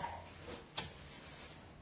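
A knife taps on a cutting board.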